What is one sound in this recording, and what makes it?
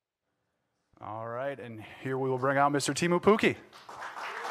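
A man speaks through a microphone to an audience.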